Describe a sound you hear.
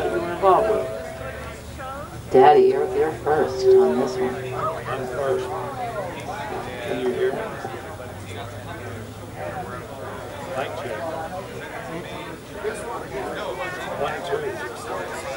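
A man asks questions into a microphone.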